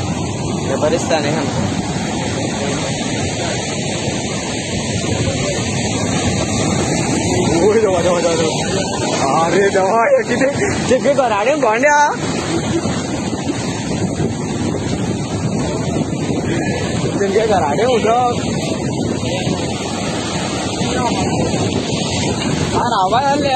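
Rough surf roars and muddy floodwater rushes close by, outdoors.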